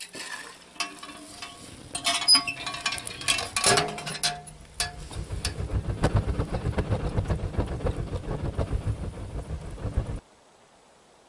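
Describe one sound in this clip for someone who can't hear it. A wood fire crackles and roars in a stove.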